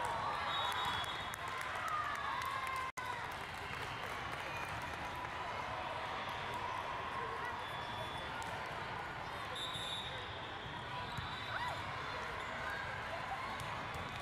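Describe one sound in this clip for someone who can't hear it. Many voices chatter and call out in a large echoing hall.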